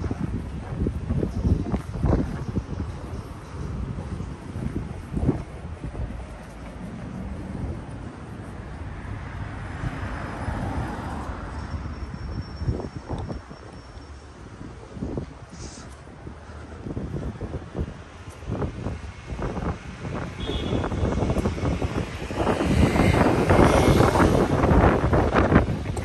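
Wind rumbles across outdoors.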